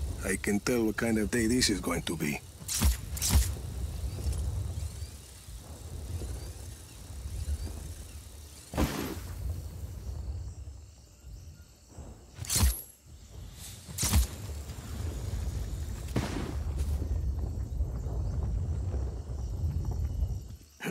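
A huge stone ball rumbles as it rolls.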